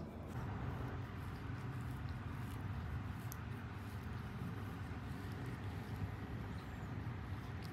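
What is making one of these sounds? A cat licks its paw.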